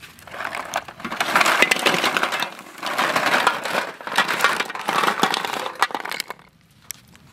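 Snail shells clatter as they are poured into a metal pot.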